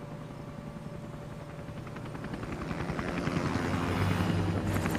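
A helicopter approaches overhead, its rotor thudding louder and louder.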